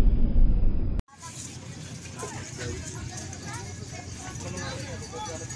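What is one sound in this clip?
People talk at a distance outdoors.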